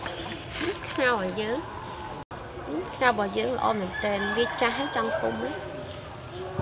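A young woman speaks brightly and close by.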